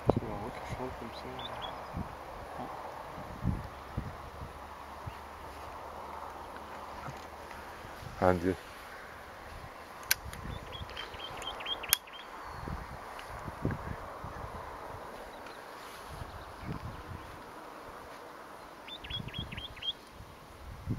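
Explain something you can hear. A bird gives short, high chirps in quick bursts.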